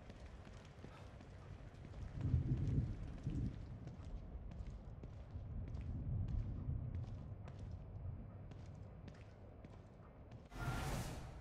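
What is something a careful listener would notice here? Footsteps tap across a hard tiled floor.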